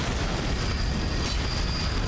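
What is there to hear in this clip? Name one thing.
A burst of magic whooshes and crackles.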